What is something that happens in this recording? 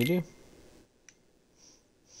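A short menu selection click sounds.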